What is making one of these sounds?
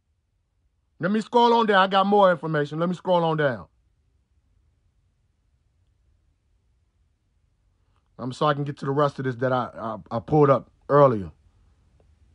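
A young man speaks calmly and close up, in short bursts.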